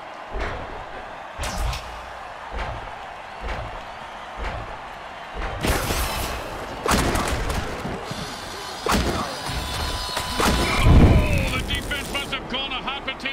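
A stadium crowd roars and cheers.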